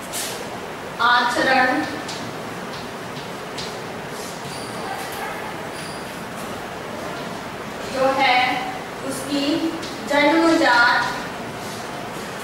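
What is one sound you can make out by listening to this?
A woman speaks in short phrases, close by.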